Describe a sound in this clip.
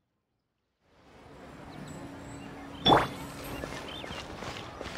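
Quick footsteps run on stone.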